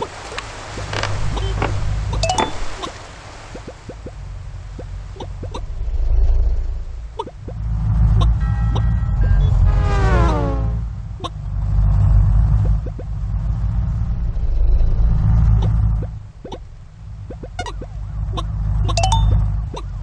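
Game sound effects hop and click in quick succession.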